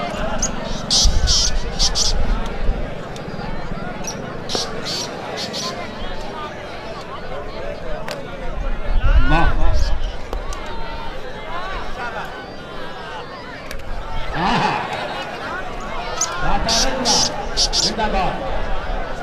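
A large crowd cheers and shouts in loud bursts.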